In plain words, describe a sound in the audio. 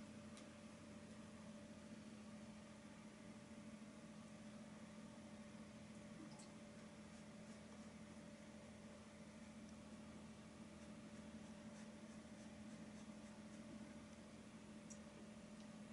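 A brush softly dabs and strokes on paper.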